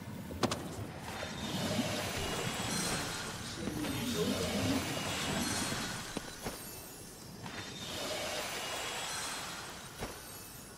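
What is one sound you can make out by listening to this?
Swirling magical energy whooshes and hums.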